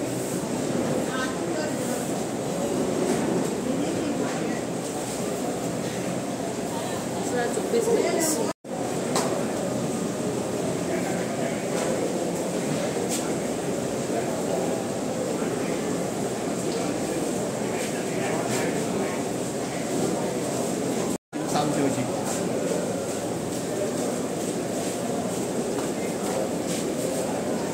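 Men murmur quietly in a large echoing hall.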